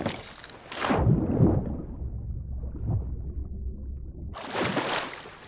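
Muffled, low rumbling water surrounds a swimmer under the sea.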